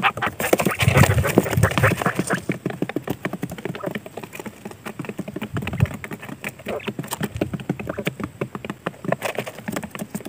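Quail scuffle and scratch inside a cardboard box.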